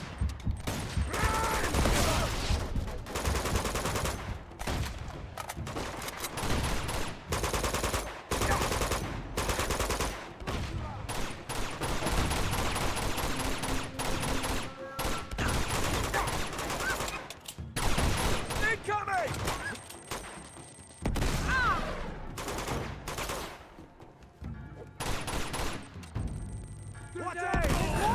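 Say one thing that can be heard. Rapid gunfire crackles and bangs.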